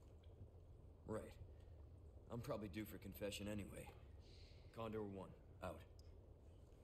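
A young man talks casually into a close microphone.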